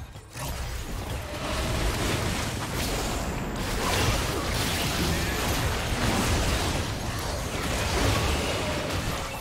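Magic blasts and hits crackle and burst rapidly during a video game battle.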